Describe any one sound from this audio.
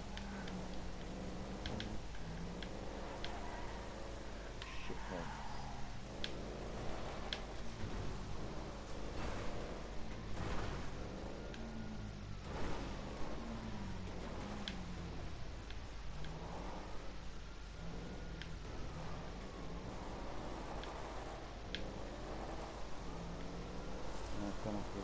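A car engine revs and hums steadily.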